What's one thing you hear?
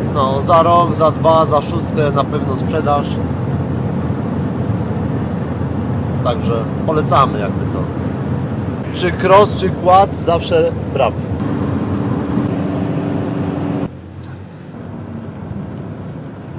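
A vehicle engine hums steadily over road noise.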